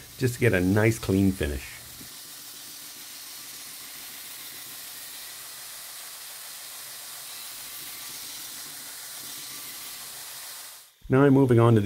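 A belt grinder whirs steadily as metal is ground against it, hissing.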